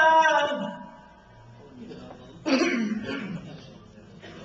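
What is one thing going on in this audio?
A man chants in a melodic voice through a microphone, with a slight echo.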